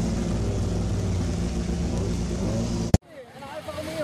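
A rally car engine idles with a low rumble.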